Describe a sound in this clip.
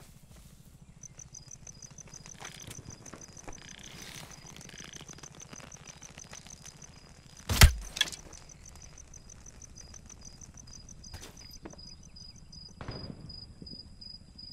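Fires crackle and burn nearby.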